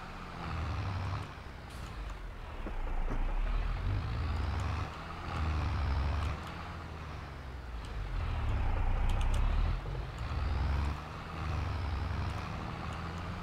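A tractor engine rumbles and drones steadily.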